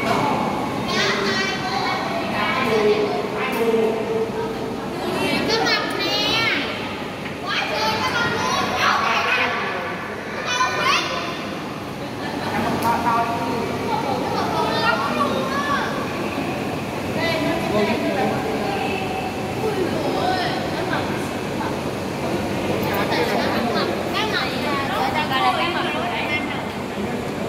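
Children chatter and call out excitedly nearby.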